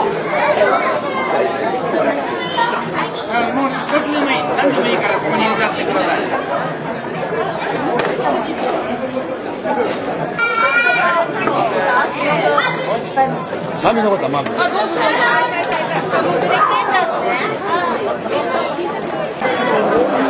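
A crowd of adults and children chatter close by.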